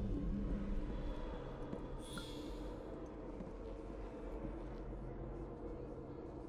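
Footsteps pad softly across a rooftop.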